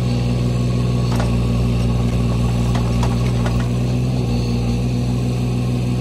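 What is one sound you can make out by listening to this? A digger bucket scrapes and clunks in the soil.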